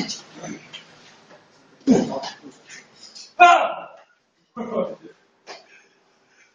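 Hands slap against forearms as two men spar.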